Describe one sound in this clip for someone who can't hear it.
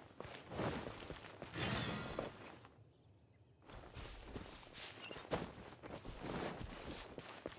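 Footsteps patter on grass and stone as a game character runs.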